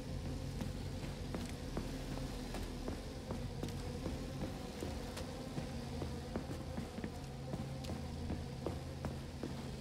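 Footsteps tap steadily up stairs.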